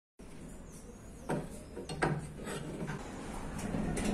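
A metal clamp clanks against a blade.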